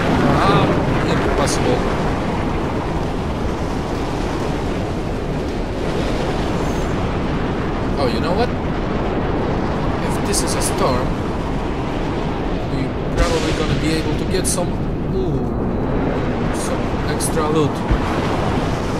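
Strong wind roars steadily outdoors in a sandstorm.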